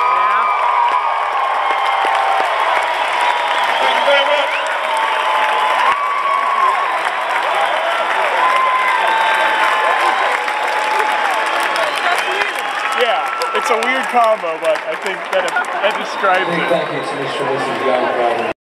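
A large crowd cheers and whistles loudly in an open-air arena.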